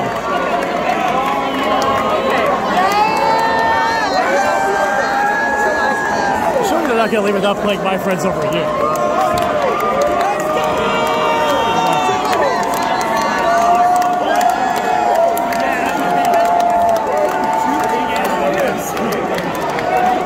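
A crowd talks and shouts loudly.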